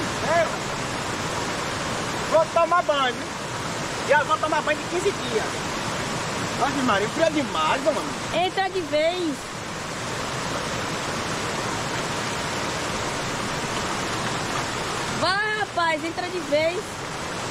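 A young man talks loudly outdoors in short bursts.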